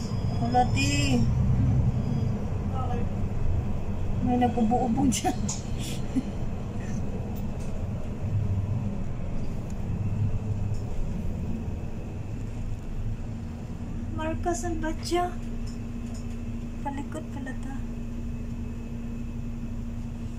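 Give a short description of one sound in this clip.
A car engine rumbles low and steady from inside a moving car.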